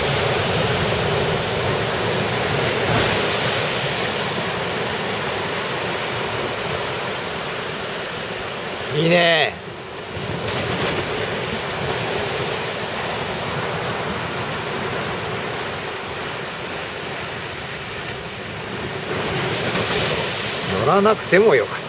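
Waves wash and break close by in a steady rush.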